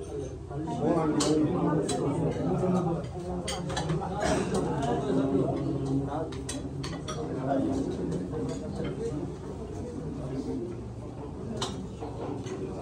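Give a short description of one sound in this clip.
Men and women chat in a crowded room.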